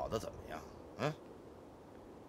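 A man chuckles softly.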